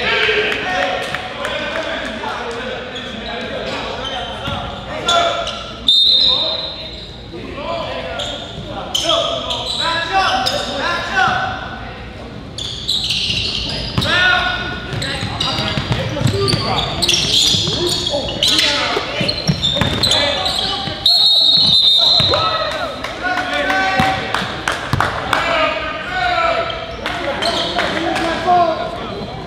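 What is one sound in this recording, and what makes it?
Young men shout across an echoing gym.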